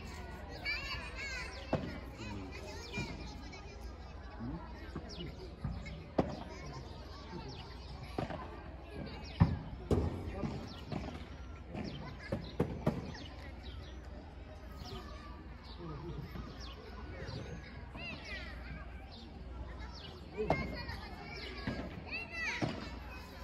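A ball bounces off the court and glass walls.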